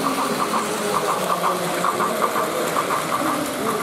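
A toy train whirs and clicks steadily along plastic track.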